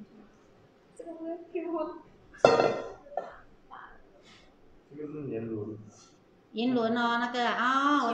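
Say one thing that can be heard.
A middle-aged woman speaks with animation close to a microphone.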